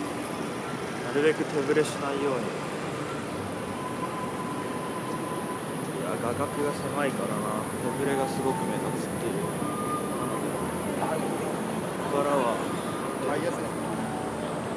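A young man talks casually close up, outdoors.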